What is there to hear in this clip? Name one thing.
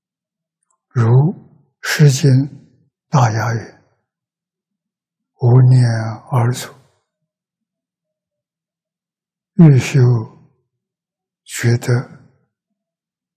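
An elderly man speaks slowly and calmly into a close microphone, with long pauses.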